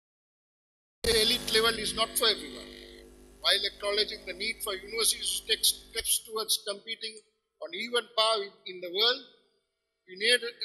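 A man speaks with animation into a microphone in a large echoing hall.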